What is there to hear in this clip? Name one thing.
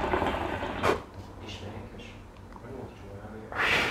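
A young man exhales a long breath.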